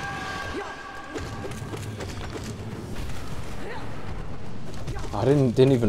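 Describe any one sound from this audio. Sharp hits and bursts ring out in a fast game fight.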